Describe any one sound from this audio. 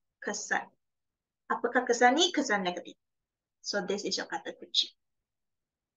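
A woman speaks calmly through a microphone, explaining.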